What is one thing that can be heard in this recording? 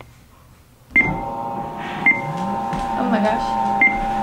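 A treadmill motor starts and hums steadily.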